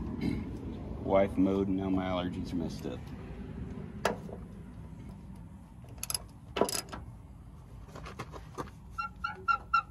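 A wrench clicks and clanks against metal fittings.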